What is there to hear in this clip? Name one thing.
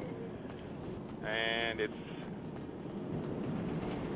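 Footsteps run across concrete.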